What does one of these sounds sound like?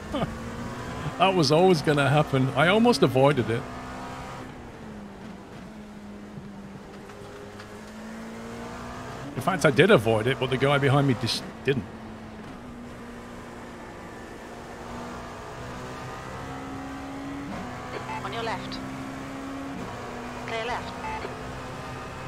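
A race car engine hums steadily and shifts pitch as it changes gear.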